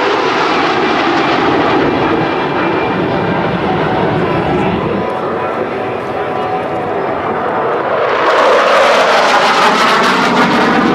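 Jet engines roar loudly overhead, with the roar swelling as more jets pass.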